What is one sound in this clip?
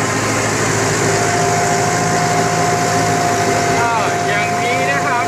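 A tractor engine chugs as the tractor drives along.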